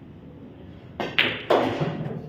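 A cue strikes a billiard ball with a sharp tap.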